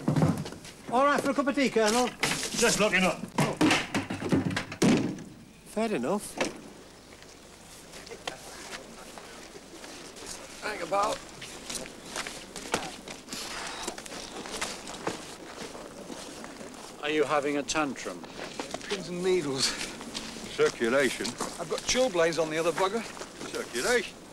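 A man speaks loudly and with strain nearby.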